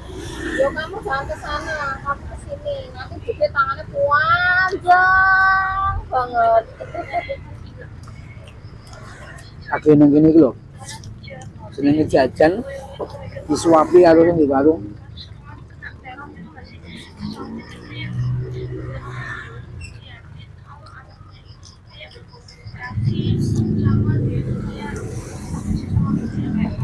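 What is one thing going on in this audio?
A man chews crunchy food with his mouth closed.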